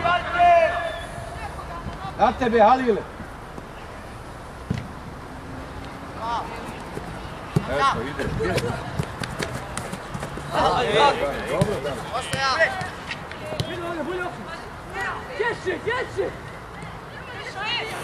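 Young men shout and call out across an open outdoor field.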